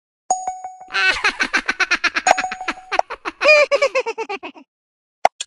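A cartoon voice laughs in quick bursts.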